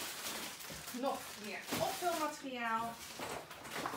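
Plastic crinkles as a woman unpacks a box.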